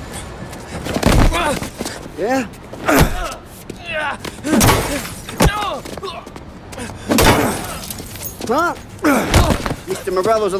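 Punches land with heavy thuds on a man.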